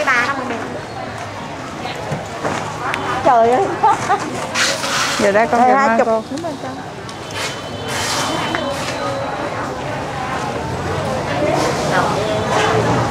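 Women talk nearby amid a busy crowd's chatter.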